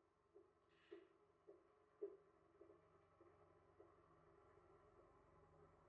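Footsteps tap softly on pavement.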